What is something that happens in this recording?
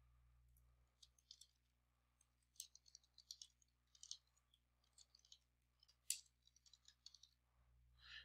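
Keys click softly as someone types on a keyboard.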